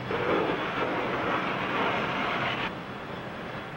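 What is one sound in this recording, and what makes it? Steam hisses loudly from a truck engine.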